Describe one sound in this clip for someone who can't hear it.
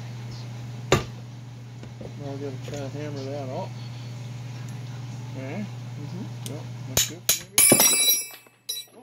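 Metal tools clank sharply against a steel vise.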